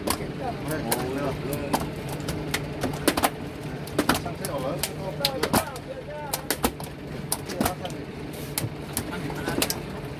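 Fishing line clicks and rattles against a bucket rim.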